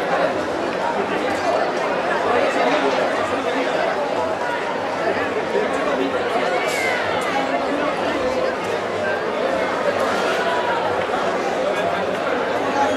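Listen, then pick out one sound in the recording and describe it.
A crowd of people chatters and calls out loudly outdoors.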